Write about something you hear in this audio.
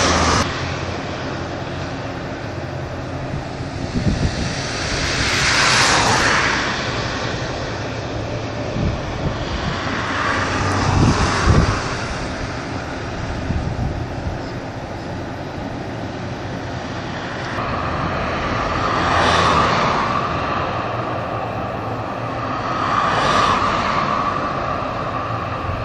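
Wind blows steadily outdoors, gusting now and then.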